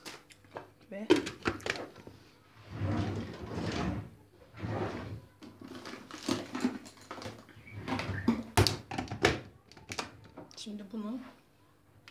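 An electric blender whirs in short bursts, chopping food.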